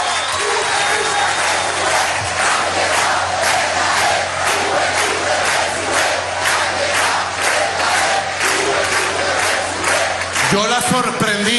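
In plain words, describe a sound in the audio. A large crowd claps in rhythm.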